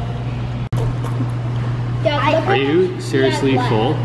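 An older boy talks close by.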